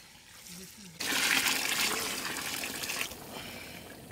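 Water pours and splashes into a pot of stew.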